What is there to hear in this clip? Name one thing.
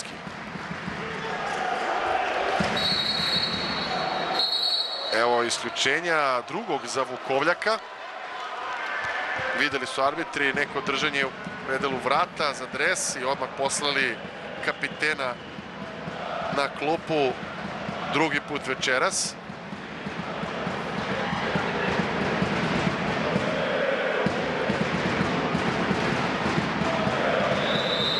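A large crowd roars and cheers in an echoing hall.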